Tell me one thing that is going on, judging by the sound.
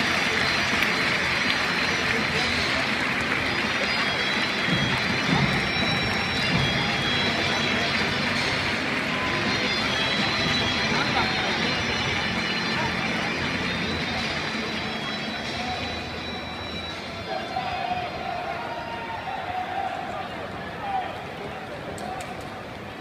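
A large stadium crowd roars and chants, echoing under the roof.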